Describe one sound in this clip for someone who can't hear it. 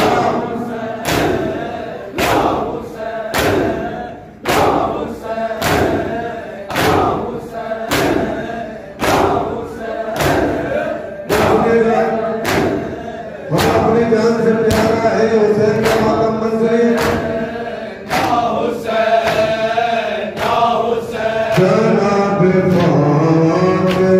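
A crowd of men beats their chests in a steady, heavy rhythm.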